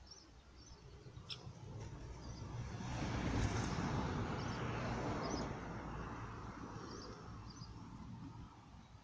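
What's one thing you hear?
Wind blows past in gusts outdoors.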